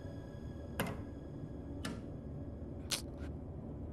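Footsteps tap on a hard floor.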